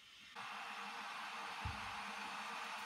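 A mug is set down on a table with a dull thud.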